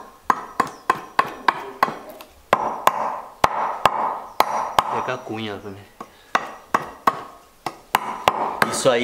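A blade chops sharply into wood in quick, repeated knocks.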